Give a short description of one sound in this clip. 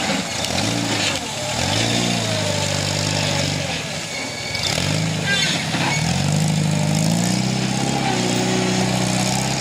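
An off-road buggy's engine revs hard, rising and falling.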